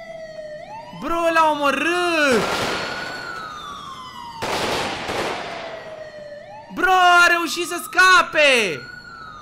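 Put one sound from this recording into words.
A young man speaks loudly and excitedly into a close microphone.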